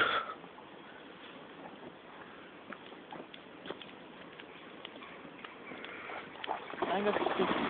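A dog paddles through a stream.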